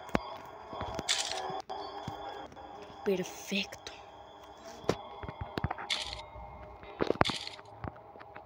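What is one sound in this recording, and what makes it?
A short bright chime rings as an item is picked up.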